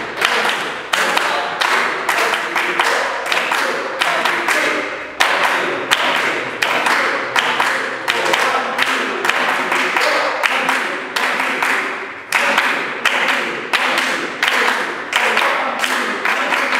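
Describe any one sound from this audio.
A hand drum is struck in a steady rhythm in an echoing room.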